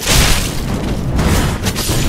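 Fire roars from a flame blast.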